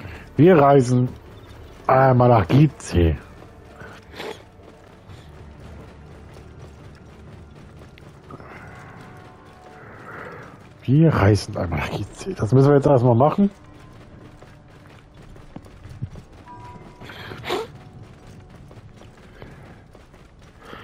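A horse gallops over soft sand, its hooves thudding.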